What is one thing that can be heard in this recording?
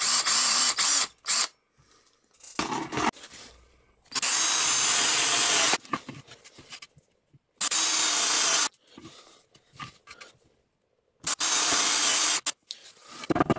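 A power drill whirs in short bursts as it bores into wood.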